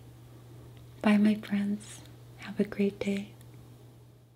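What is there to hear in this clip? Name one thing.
A woman speaks warmly and close into a microphone.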